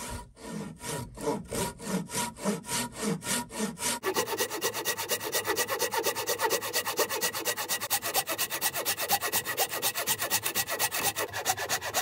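A hand saw cuts through wood in steady, rhythmic strokes.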